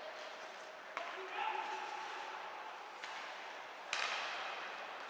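A hockey stick smacks a puck.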